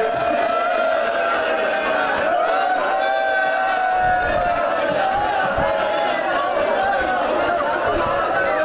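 A crowd of men chants loudly together close by.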